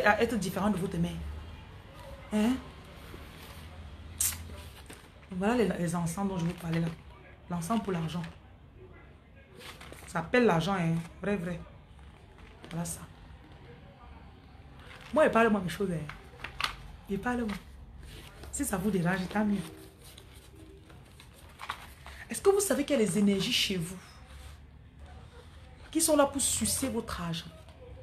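A woman talks close to a phone microphone, calmly and with pauses.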